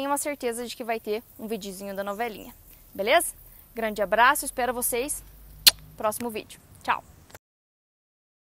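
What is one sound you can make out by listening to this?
A young woman speaks calmly and warmly, close to a microphone.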